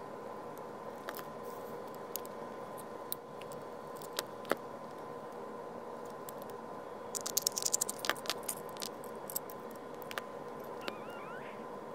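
Small plastic parts click and tap together.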